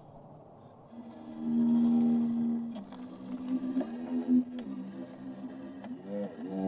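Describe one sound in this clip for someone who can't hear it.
A violin plays a slow melody with long bowed notes.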